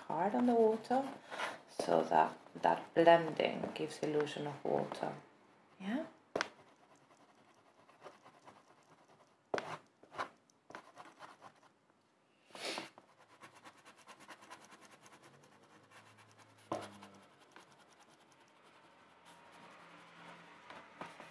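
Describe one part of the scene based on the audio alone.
A piece of soft pastel rubs and scratches softly on paper.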